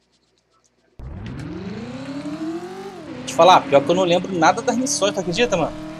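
A car engine starts up and revs, rising in pitch.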